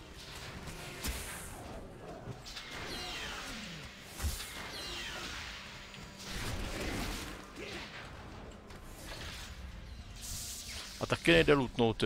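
Weapons clash and thud in a fight.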